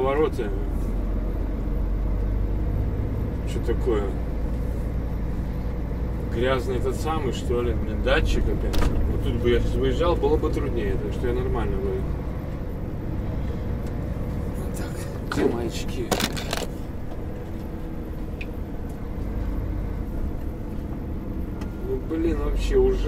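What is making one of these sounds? A vehicle engine rumbles low and steady while driving.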